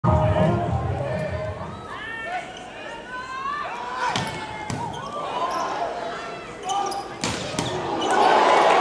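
A crowd in a large hall cheers loudly.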